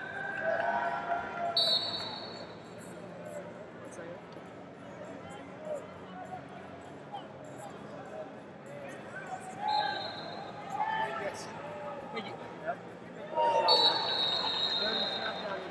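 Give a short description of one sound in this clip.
A large crowd murmurs and chatters in a big echoing arena.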